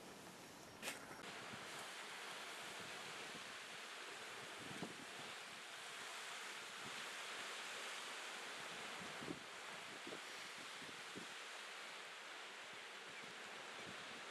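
Small waves wash softly onto a rocky shore.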